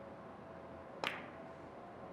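A cue strikes a billiard ball with a sharp tap.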